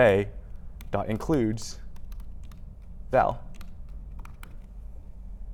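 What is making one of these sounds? Laptop keys click as a man types.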